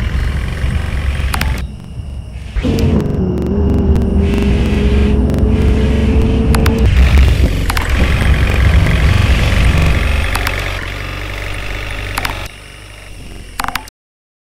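A bus engine hums steadily as the bus speeds up.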